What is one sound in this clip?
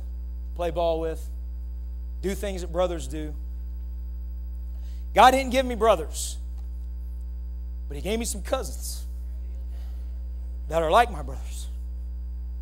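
A man preaches through a microphone in short, emphatic phrases, heard over loudspeakers in a large room.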